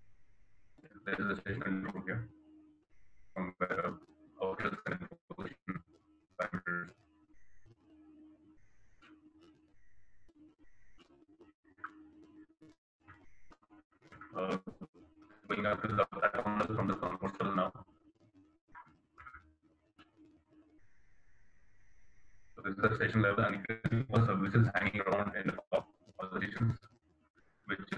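A man talks calmly through an online call, in bursts with pauses.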